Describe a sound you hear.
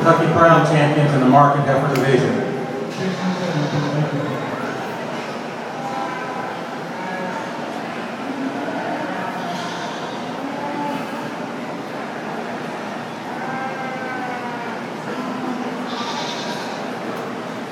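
People chatter in a large echoing hall.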